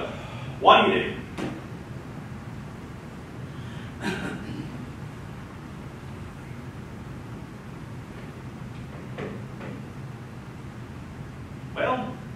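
A man speaks in short bursts in a large echoing room.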